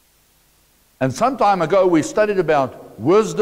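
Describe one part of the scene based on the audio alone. A middle-aged man speaks with animation through a clip-on microphone.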